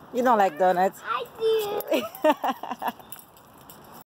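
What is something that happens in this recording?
A young child babbles excitedly close by.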